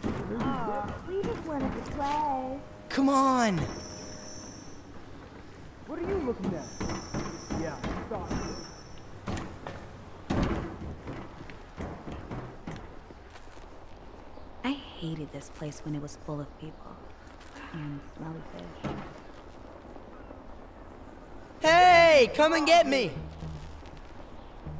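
Footsteps tap across a metal roof.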